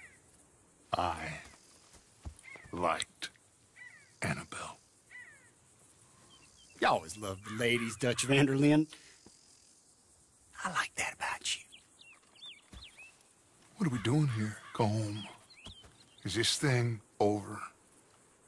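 A middle-aged man speaks calmly in a low voice.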